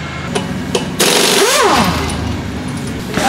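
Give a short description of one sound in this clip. An impact wrench whirs loudly.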